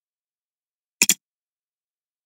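A single click sounds.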